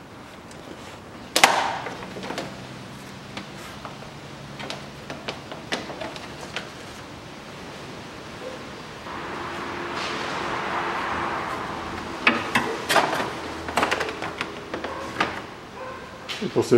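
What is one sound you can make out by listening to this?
Metal tools clink and knock against car engine parts.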